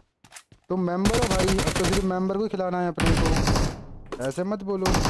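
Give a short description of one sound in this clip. Gunfire rattles in rapid bursts from a video game.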